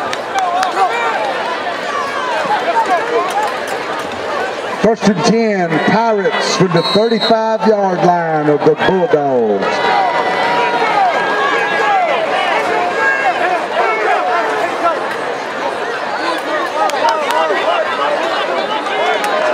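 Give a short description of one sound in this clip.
A large outdoor crowd chatters and cheers from the stands.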